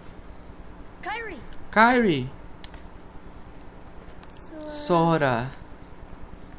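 A young boy speaks in a worried voice.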